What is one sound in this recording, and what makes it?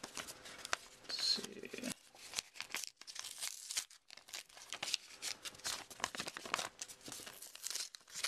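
Hands handle and rustle a paper envelope close by.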